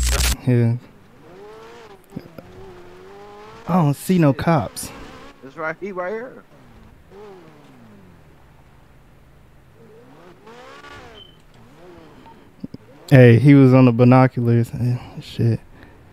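A sports car engine revs and roars while driving on sand.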